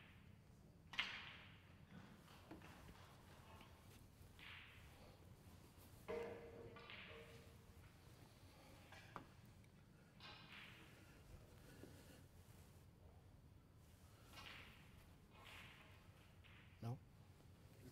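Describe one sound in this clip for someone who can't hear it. Snooker balls knock softly as they are set down on a table.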